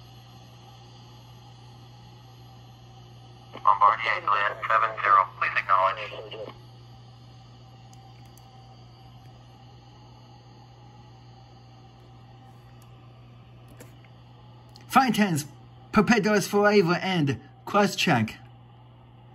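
A jet engine hums steadily at idle, heard through a loudspeaker.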